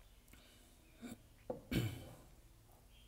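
A glass knocks down on a hard surface.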